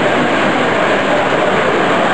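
A tinplate model train rattles along metal track.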